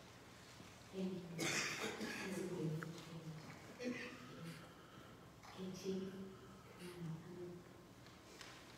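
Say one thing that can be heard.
A woman speaks through a microphone in a large echoing room.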